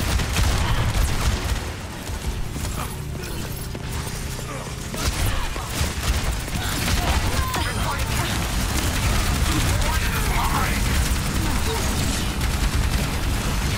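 A buzzing energy beam weapon fires in long bursts.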